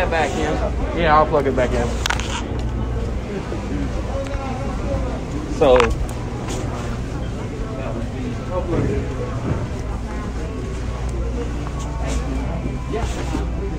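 A crowd murmurs and chatters in an echoing indoor hall.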